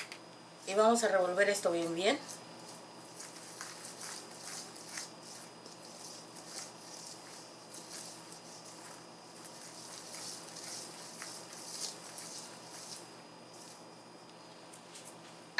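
Hands rub and mix flour in a metal bowl with a soft rustle.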